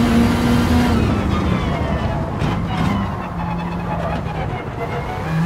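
A race car engine drops in pitch as the car slows for a bend.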